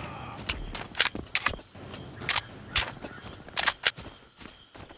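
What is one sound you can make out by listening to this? A pistol is reloaded with sharp metallic clicks.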